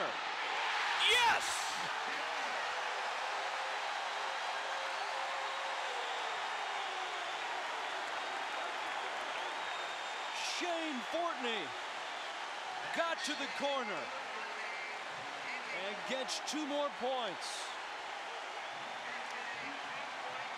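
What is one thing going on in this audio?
A stadium crowd roars and cheers outdoors.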